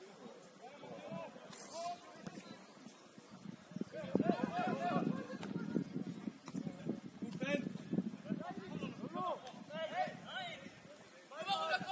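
Young men shout to each other from a distance, outdoors on an open field.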